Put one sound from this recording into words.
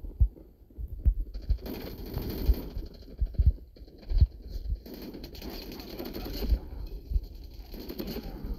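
A machine gun fires loud bursts.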